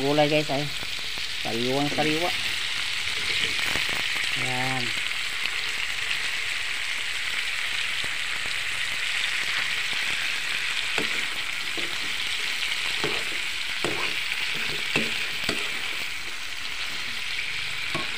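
Vegetables sizzle steadily in a hot frying pan.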